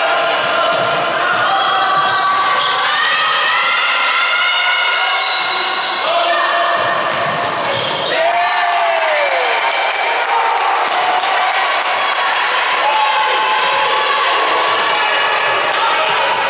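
Young players call out, echoing in a large hall.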